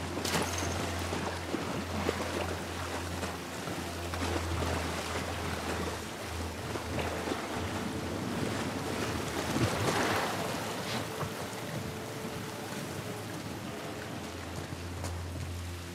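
Footsteps crunch over gravel and debris.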